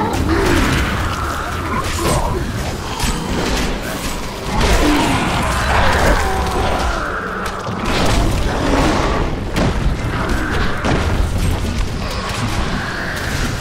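Monsters growl and shriek as they are struck.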